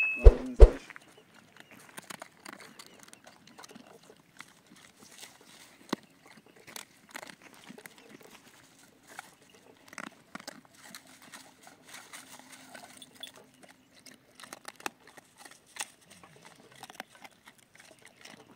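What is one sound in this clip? Dogs chew and crunch on food close by.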